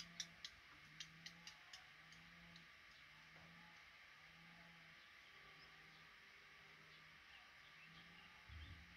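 Baby birds peep faintly in a nest.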